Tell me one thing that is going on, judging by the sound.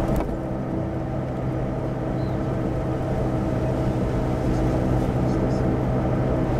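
A car engine hums steadily from inside the car while it drives.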